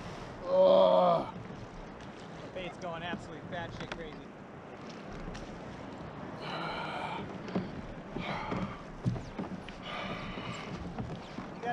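A man speaks casually, close by, outdoors.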